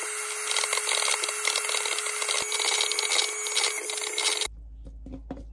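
An electric hand mixer whirs loudly.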